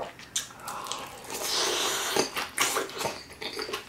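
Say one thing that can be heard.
A man slurps noodles loudly, close to a microphone.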